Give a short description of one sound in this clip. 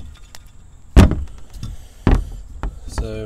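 Metal parts knock against a plastic surface.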